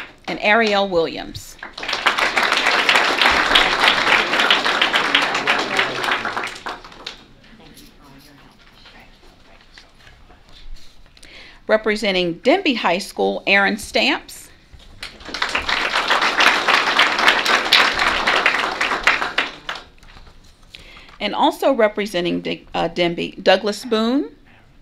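A woman speaks into a microphone, announcing in a large room.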